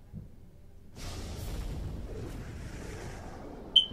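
Flames burst up and roar.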